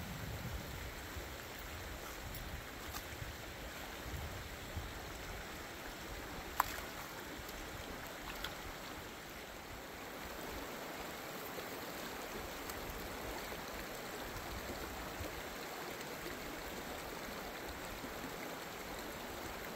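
Shallow water ripples and flows steadily over stones.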